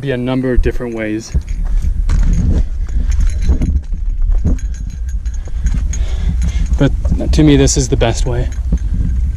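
A man speaks in short bursts close by, a little out of breath.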